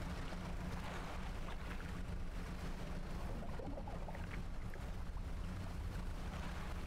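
A small boat engine rumbles steadily.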